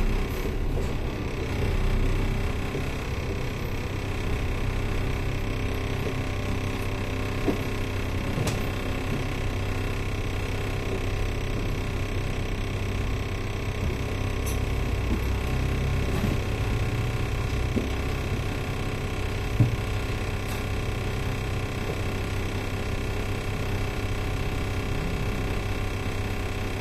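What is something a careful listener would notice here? Traffic hums steadily along a city road at night.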